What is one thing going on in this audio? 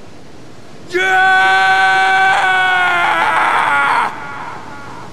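A young man screams loudly in pain.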